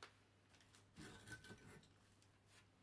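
A loose brick grinds as it is pulled out of a crumbly wall.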